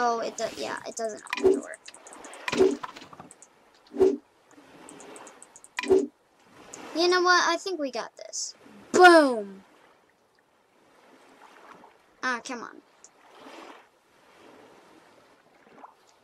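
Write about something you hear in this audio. A pickaxe strikes something underwater with dull knocks.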